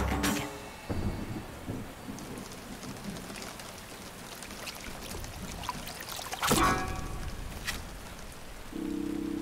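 Steady rain falls and patters.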